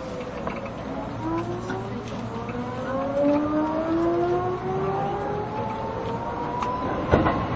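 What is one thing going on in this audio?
An electric train's motors whine, rising steadily in pitch as the train starts to pull away.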